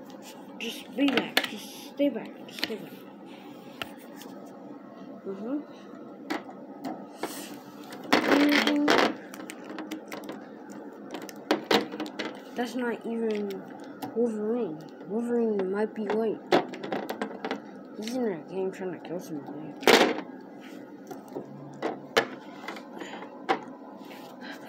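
Plastic toy figures knock and clatter against each other.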